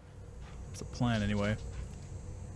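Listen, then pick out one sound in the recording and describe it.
A young man speaks briefly into a close microphone.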